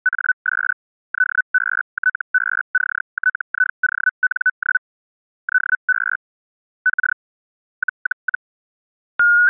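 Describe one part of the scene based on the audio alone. An electronic keyer beeps out Morse code in short, even tones.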